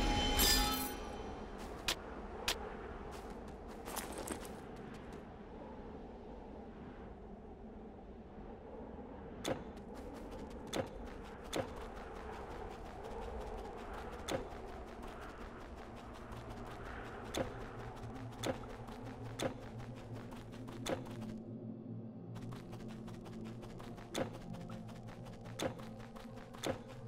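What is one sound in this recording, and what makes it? Sharp game hits and clicks sound now and then.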